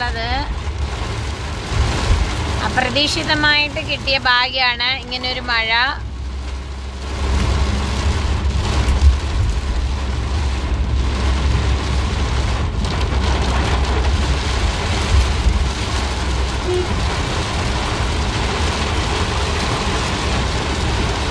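A car engine rumbles low.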